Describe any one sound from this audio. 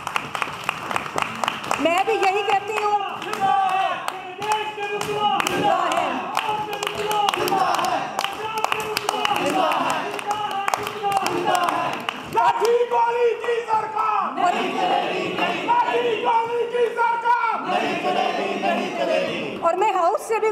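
A crowd of men chant slogans loudly in unison, echoing in a hall.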